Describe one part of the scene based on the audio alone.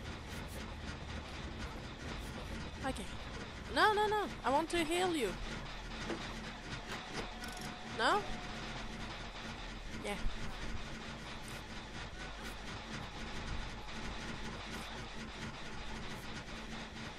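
A generator engine hums and rattles steadily.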